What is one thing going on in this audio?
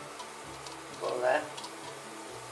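Grains pour into a metal pot.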